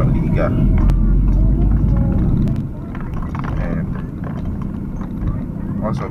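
A car engine rumbles low and steady inside the car.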